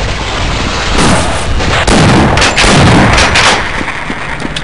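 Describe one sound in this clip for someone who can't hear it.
A shotgun fires loud booming blasts in an echoing room.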